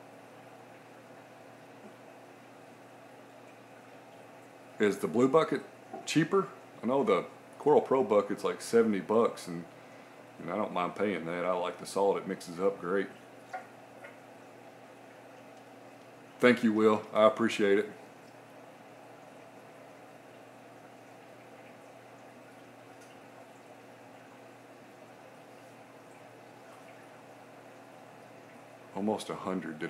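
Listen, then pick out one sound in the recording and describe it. Water in a tank gently ripples and burbles at the surface.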